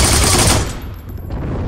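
A machine gun fires a loud rapid burst.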